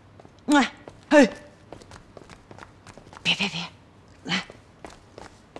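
A woman calls out with excitement.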